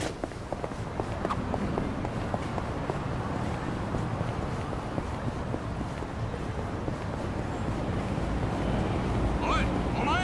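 Footsteps run on pavement outdoors.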